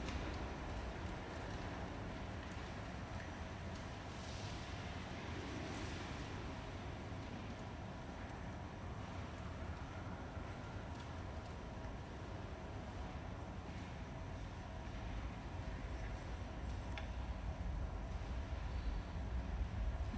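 An elderly man speaks calmly into a microphone, echoing in a large reverberant hall.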